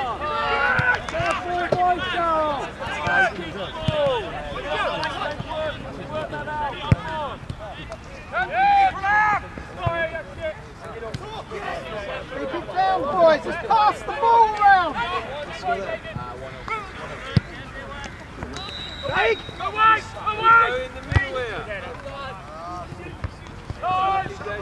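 Young players shout and call to each other across an open field outdoors.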